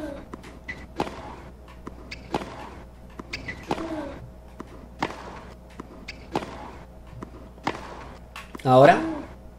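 A tennis ball is hit back and forth with rackets, with sharp regular pops.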